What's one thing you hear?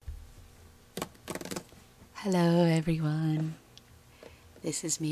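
Plastic bottles tap and knock lightly against each other.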